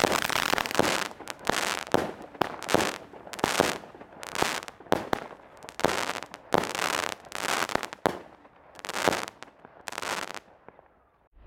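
Aerial shells from a firework cake burst in sharp bangs overhead.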